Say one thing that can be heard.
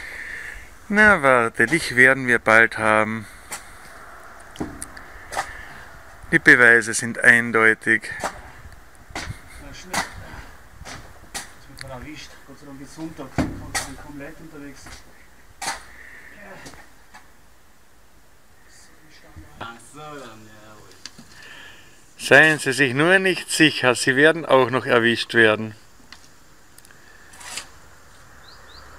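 A shovel scrapes and digs into dirt.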